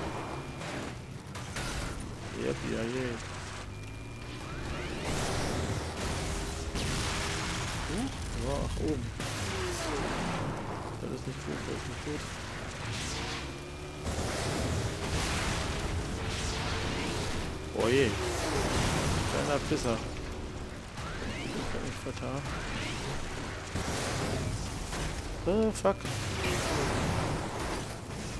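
A dune buggy engine revs.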